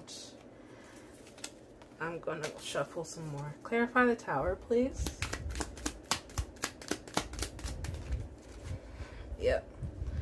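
A playing card slides and taps on a soft surface.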